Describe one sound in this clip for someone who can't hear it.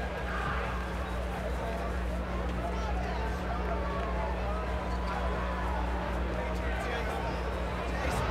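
A crowd cheers and chatters loudly in a large echoing arena.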